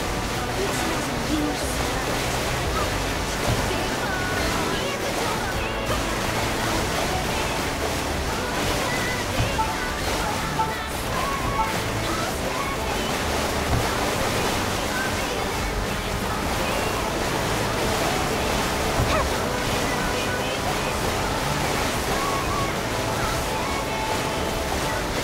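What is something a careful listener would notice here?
A jet ski engine roars steadily.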